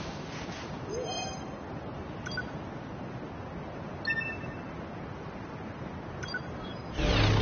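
Short electronic chimes ring out now and then.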